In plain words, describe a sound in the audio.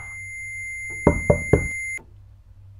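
Loud knocks bang on a wooden door.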